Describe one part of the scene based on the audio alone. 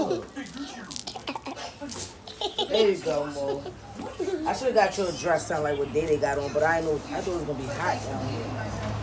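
A young girl laughs loudly up close.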